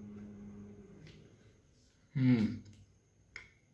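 A man hums with pleasure while eating.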